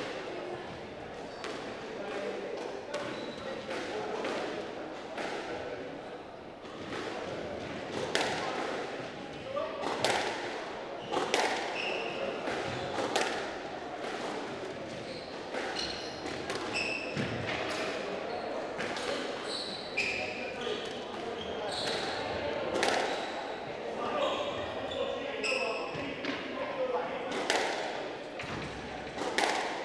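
A squash ball smacks against the walls, thudding back and forth.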